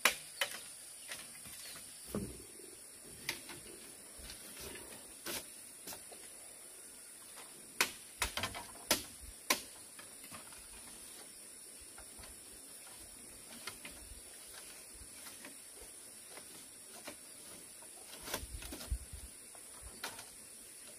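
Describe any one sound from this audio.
Bamboo strips clatter and knock as they are laid on the ground.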